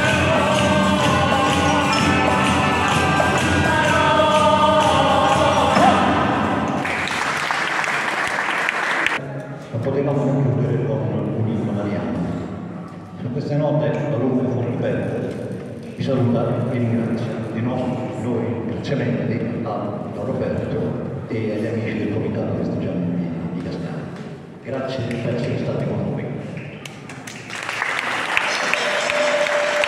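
A flute plays a melody.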